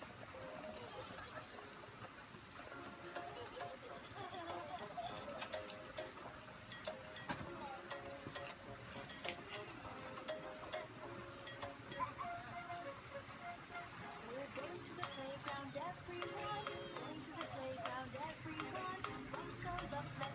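A small child taps and presses the buttons on a plastic toy.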